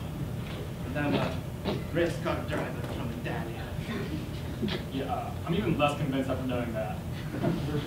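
A person speaks through a microphone and loudspeakers in a large room.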